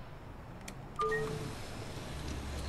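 A bus door chimes and hisses open.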